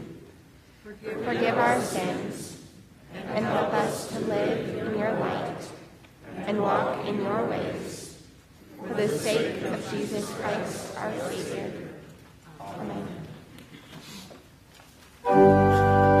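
A young woman reads aloud in a calm voice in an echoing room.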